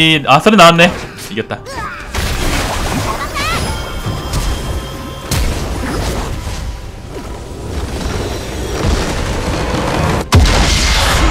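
Video game battle effects clash, zap and explode.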